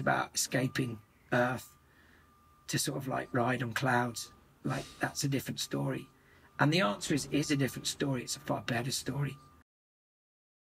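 A man talks calmly and closely over an online call.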